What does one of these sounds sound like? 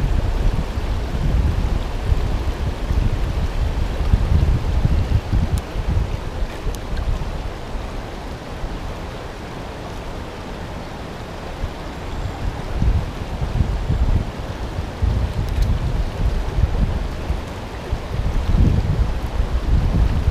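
A shallow stream rushes and burbles over rocks close by.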